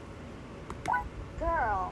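A mouse clicks once.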